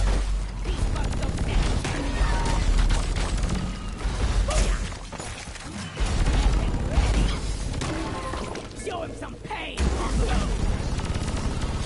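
A weapon fires rapid zapping energy bursts.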